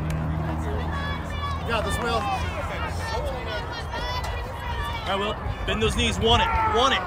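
Children shout and cheer at a distance outdoors.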